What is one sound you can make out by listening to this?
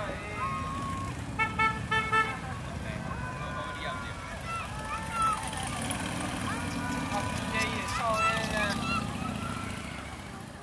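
Motorcycles rumble past one after another.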